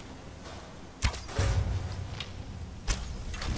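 A bowstring twangs as an arrow is loosed.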